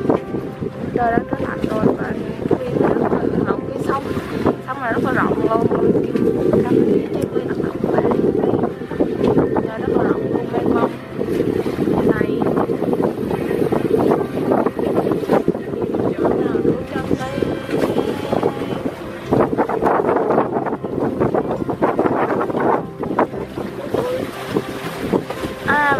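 Choppy water splashes against a moving boat.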